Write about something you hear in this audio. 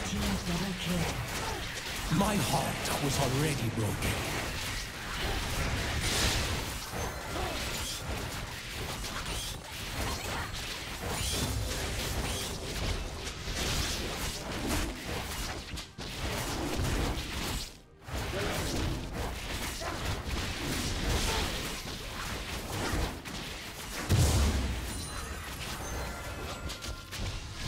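Spell effects and weapon hits crackle and clash in a game battle.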